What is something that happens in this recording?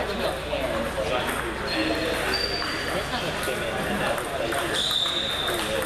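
Ping pong balls click against paddles and tables in a large echoing hall.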